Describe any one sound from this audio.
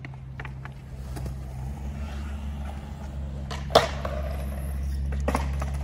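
Skateboard wheels roll on concrete.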